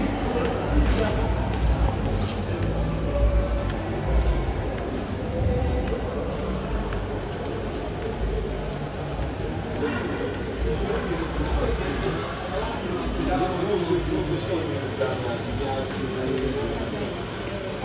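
Crowd chatter murmurs.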